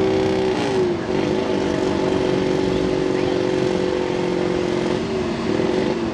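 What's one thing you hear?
Mud and water splash against a truck.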